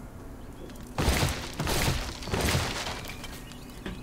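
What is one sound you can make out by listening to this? A wooden wall breaks apart with a loud crumbling crash.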